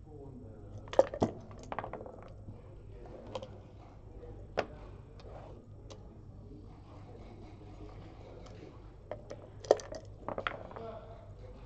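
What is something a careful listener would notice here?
Dice rattle and tumble across a board.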